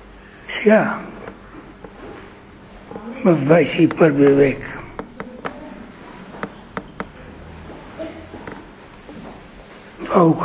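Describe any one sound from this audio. An elderly man speaks with feeling in an echoing room.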